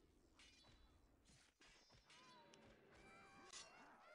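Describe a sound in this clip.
Swords clash and clang in a skirmish.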